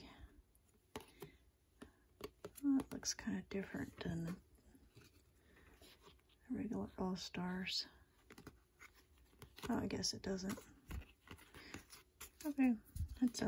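Trading cards rustle and slide against each other in someone's hands.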